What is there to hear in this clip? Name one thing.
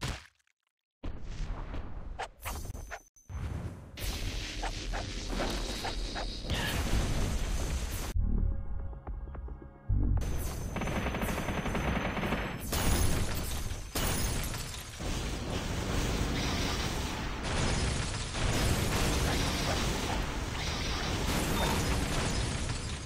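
Giant monsters roar in a loud fight.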